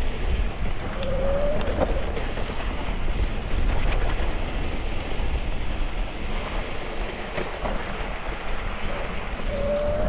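A bicycle chain and frame clatter over bumps.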